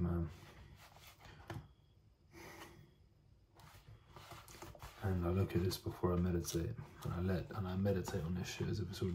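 Paper rustles and crinkles as a folder is handled.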